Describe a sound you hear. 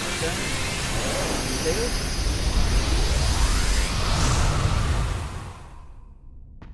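A loud magical blast roars and rumbles, then dies away.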